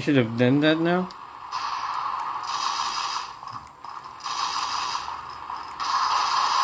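A video game's low ambient rumble plays through a small handheld speaker.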